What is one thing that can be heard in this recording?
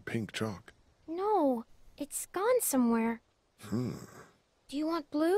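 A young girl answers softly.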